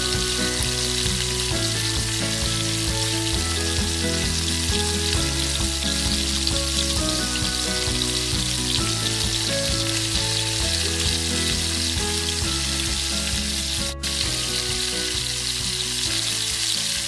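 Garlic sizzles in hot oil in a pan.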